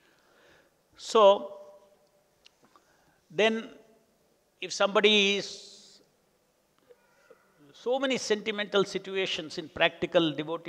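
An elderly man speaks into a microphone in slow, drawn-out phrases, with pauses between them.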